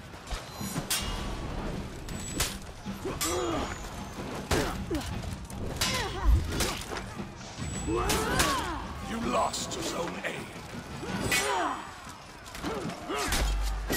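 Swords clash and strike in quick bursts.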